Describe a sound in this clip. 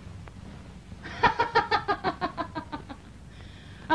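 A woman laughs loudly in bursts.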